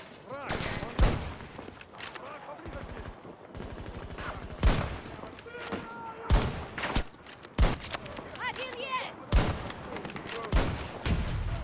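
A rifle fires loud single shots.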